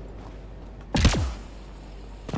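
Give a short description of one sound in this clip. A jet pack bursts with a sudden whoosh.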